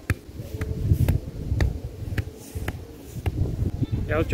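A ball thuds repeatedly against a man.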